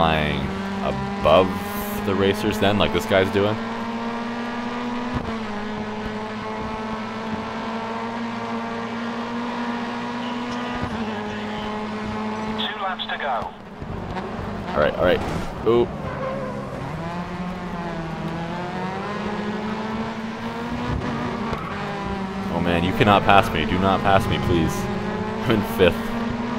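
Tyres squeal and skid on tarmac.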